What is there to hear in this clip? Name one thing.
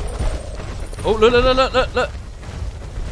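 A large creature lets out a long, wavering honk.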